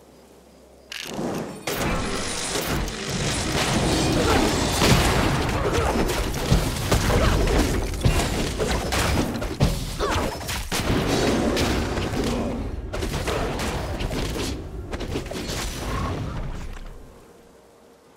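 Game spells blast and weapons clash in a busy fight.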